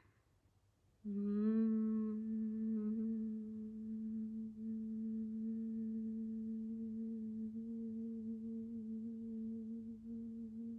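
A young woman hums a steady low buzzing tone with her mouth closed.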